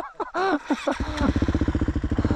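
A motorbike engine putters with a fast, even beat.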